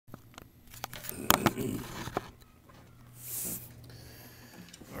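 Hands bump and rub against an acoustic guitar close by.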